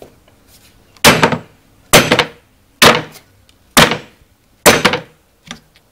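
A boot stamps down hard on a metal tool with loud thuds.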